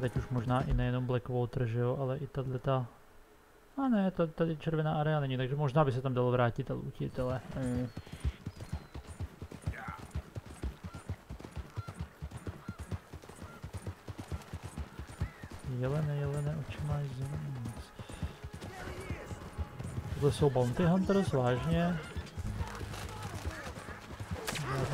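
A horse's hooves thud steadily at a gallop on a dirt path.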